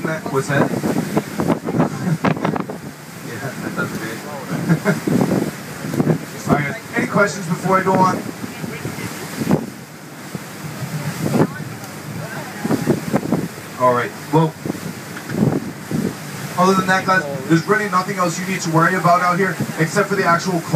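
A young man speaks with animation into a microphone, heard through a loudspeaker.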